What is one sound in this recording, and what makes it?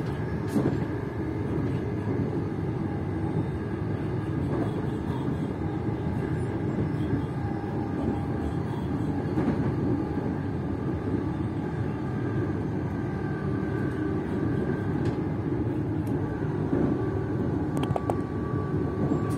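A passenger train rumbles along the rails, heard from inside the carriage.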